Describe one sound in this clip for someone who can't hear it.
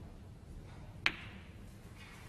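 Snooker balls knock against each other with a click.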